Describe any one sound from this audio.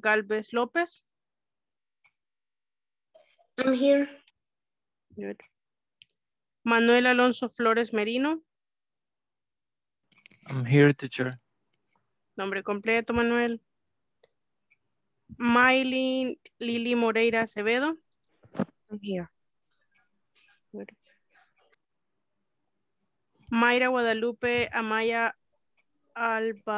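A young woman speaks calmly through an online call, in short bursts with pauses.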